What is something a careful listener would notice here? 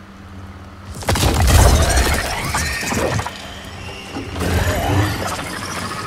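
A loud blast rumbles and debris crashes down.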